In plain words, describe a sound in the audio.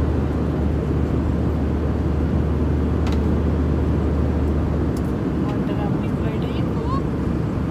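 An aircraft cabin hums with a loud, steady low engine drone.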